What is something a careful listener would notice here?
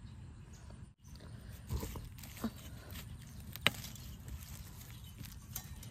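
A small metal trowel scrapes and digs into dry soil.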